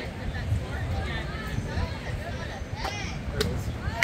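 A softball smacks into a catcher's mitt.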